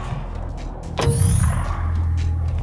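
A heavy metal door slides open with a loud thud.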